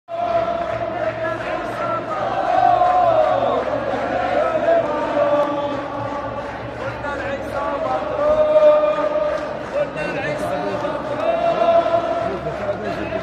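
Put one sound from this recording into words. Many people murmur and talk nearby in a crowd.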